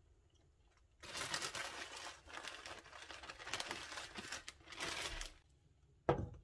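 Grated cheese is sprinkled onto an omelette in a pan.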